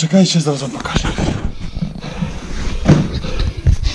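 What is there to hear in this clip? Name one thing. A man speaks loudly and cheerfully close to the microphone.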